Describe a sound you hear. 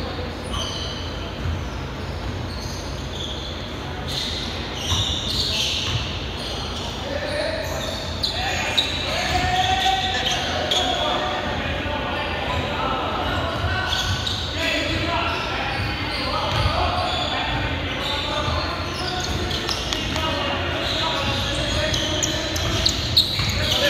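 Several adults call out and talk in a large echoing hall.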